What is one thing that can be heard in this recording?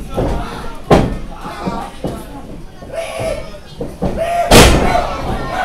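Wrestlers thud heavily onto a ring mat.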